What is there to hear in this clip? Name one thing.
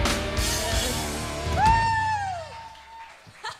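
A drummer plays a loud, driving beat on a drum kit.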